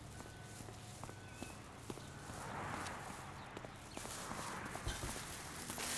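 Plastic shopping bags rustle.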